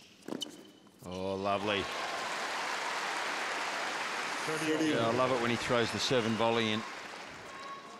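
A large crowd applauds and cheers loudly.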